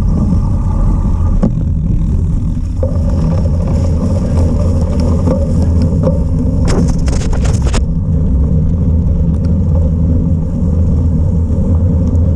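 Wind buffets the microphone with a steady low rumble outdoors.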